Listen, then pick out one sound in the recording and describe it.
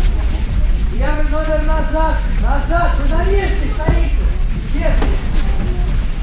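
A man calls out loudly from across the hall.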